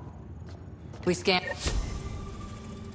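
A heavy sci-fi door slides with a loud mechanical whoosh and clank.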